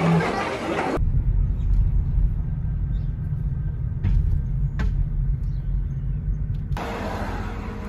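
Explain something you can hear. Low road rumble fills a moving car.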